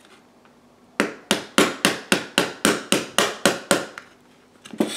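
A clockwork toy's key clicks rapidly as it is wound.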